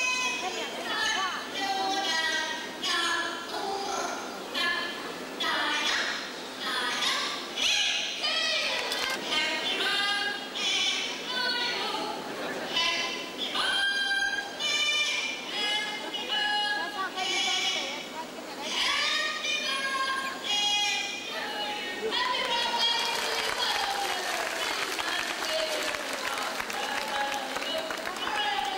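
A young woman speaks cheerfully through a loudspeaker microphone.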